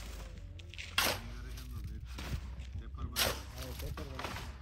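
A shovel scrapes through dry earth.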